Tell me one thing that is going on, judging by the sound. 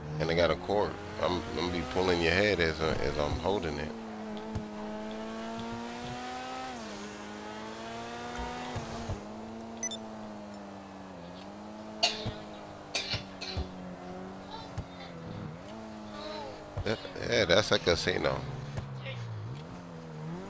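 A sports car engine hums steadily, rising and falling in pitch as the car drives.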